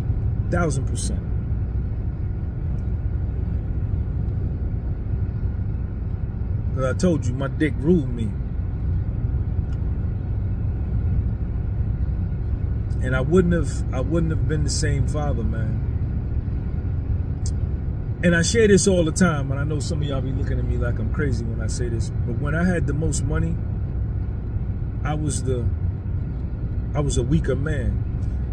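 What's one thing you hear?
A car's engine rumbles low and steady.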